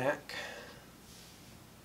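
A sheet of stiff paper rustles and taps as it is set down.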